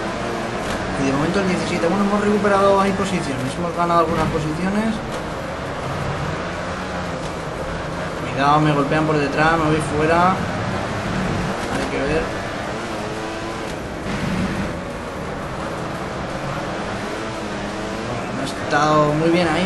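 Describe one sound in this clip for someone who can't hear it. A motorcycle engine revs up and down through the gears.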